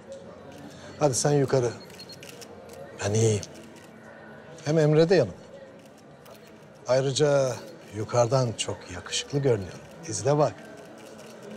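An elderly man speaks warmly up close.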